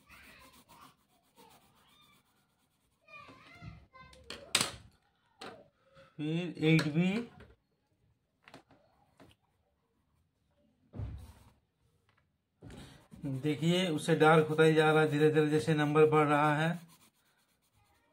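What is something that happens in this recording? A pencil scratches softly across paper.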